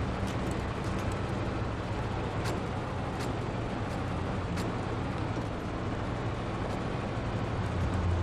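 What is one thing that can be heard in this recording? Tyres crunch over snow and rocks.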